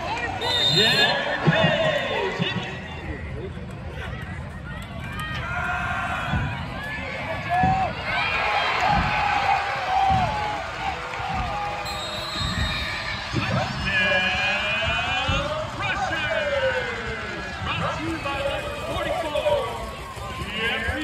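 A crowd cheers and shouts in an open stadium.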